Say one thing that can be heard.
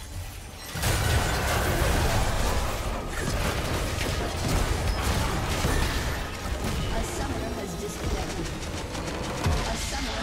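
Fantasy battle effects crackle, whoosh and clash in a busy fight.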